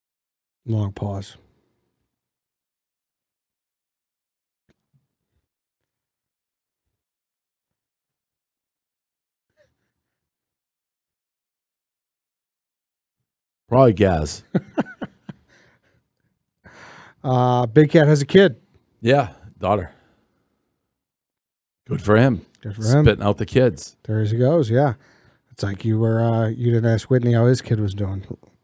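A man speaks into a close microphone in a relaxed, conversational way.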